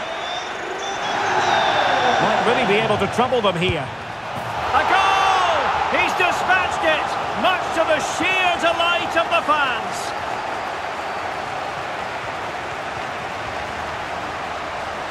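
A large stadium crowd roars and cheers loudly.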